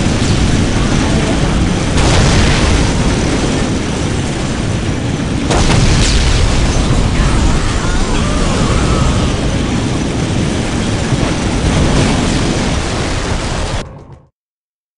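Flamethrowers roar steadily with loud whooshing fire.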